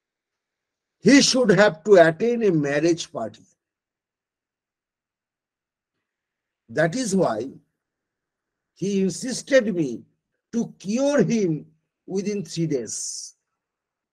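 An elderly man speaks calmly through an online call microphone, in short phrases.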